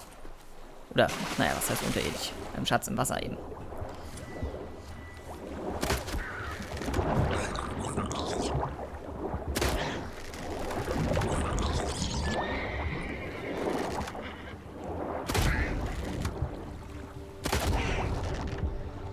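Muffled underwater rumbling and swirling go on.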